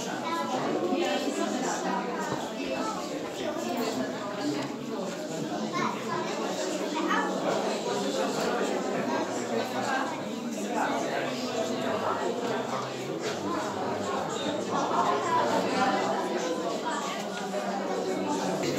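A crowd of men and women chatter all around in an echoing room.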